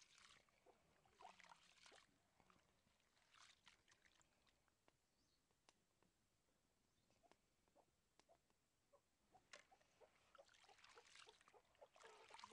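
Hands swish and splash through water in a bowl.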